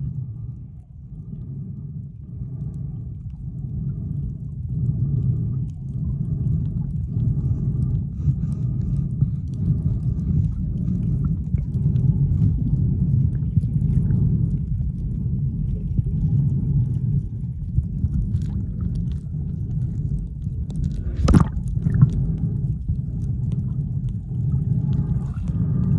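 Water rumbles and swirls steadily around a microphone held underwater.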